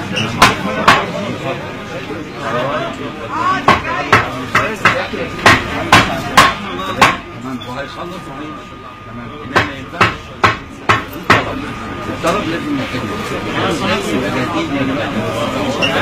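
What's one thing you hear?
A crowd of men chatter in the background.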